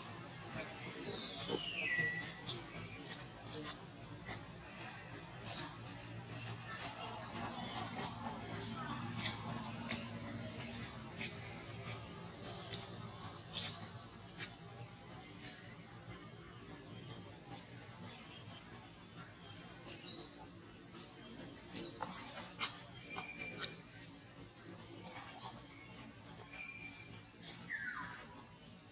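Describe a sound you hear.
Leaves rustle softly as monkeys shift on branches.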